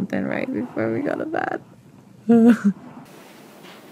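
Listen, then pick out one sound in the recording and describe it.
A young woman talks softly and cheerfully, close by.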